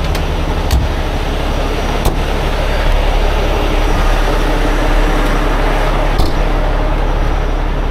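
A large truck engine idles with a steady low rumble.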